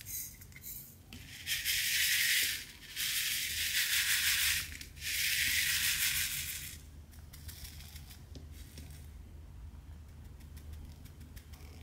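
Loose plastic beads rattle and tick softly.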